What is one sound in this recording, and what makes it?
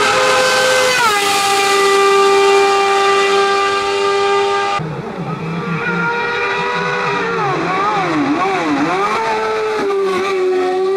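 A racing car's engine drops in pitch and rises again as the driver shifts and brakes for a bend.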